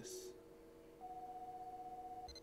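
An arcade machine plays a steady electronic beep.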